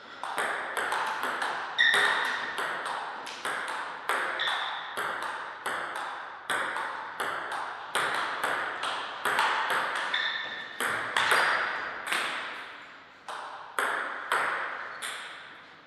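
A table tennis ball clicks quickly back and forth off paddles and the table, echoing in a large hall.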